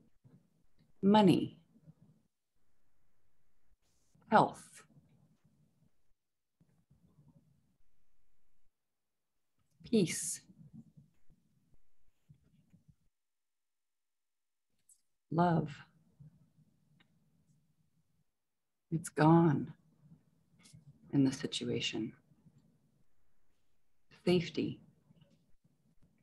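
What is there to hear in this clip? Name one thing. A woman speaks in short phrases through an online call, with long pauses between them.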